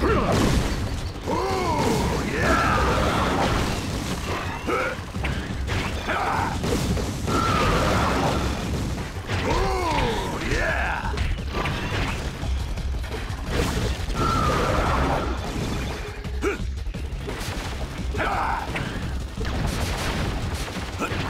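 Blows and explosions thud again and again.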